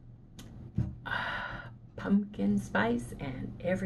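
A middle-aged woman speaks with animation, close to the microphone.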